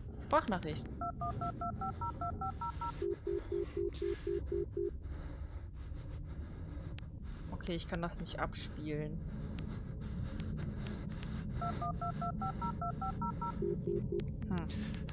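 A mobile phone's keys beep in quick, short tones.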